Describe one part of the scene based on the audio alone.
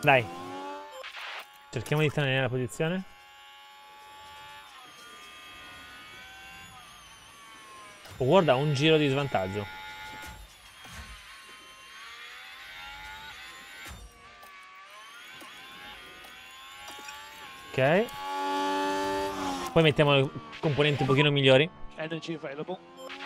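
A racing car engine whines steadily at high revs, its pitch rising and falling.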